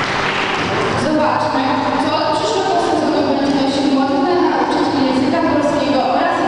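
A young woman speaks through a microphone and loudspeaker.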